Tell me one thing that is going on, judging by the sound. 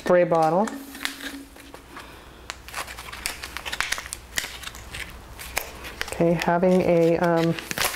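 Rubber gloves rustle and crinkle as small items are handled.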